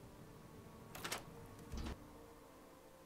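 A heavy door clunks open.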